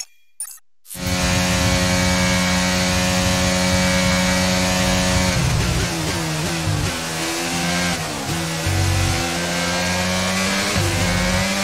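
A racing car engine roars at high revs and shifts through gears.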